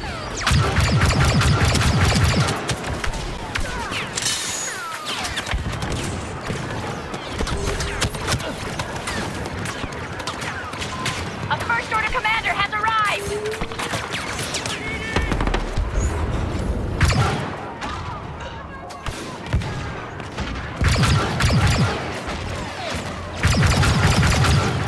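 Rapid blaster gunfire crackles and bursts.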